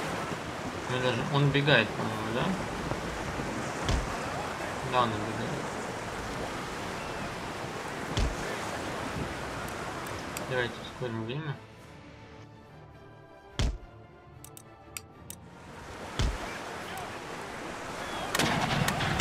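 Waves wash against a sailing ship's hull.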